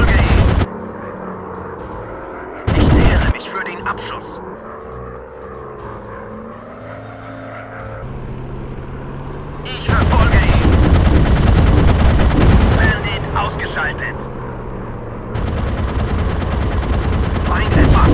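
Machine guns rattle in rapid bursts.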